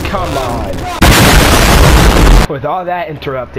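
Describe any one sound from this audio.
A massive explosion roars with a deep, rumbling blast.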